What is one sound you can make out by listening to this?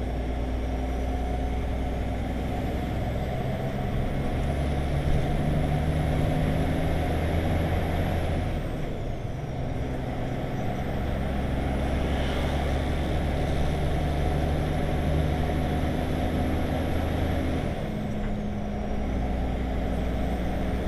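A heavy vehicle's engine drones steadily from inside the cab, rising and falling as it shifts gears.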